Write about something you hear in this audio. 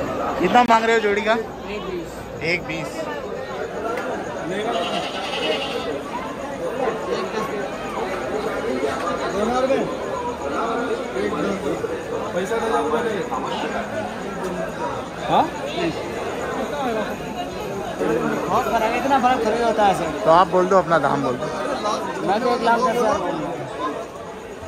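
A crowd murmurs all around outdoors.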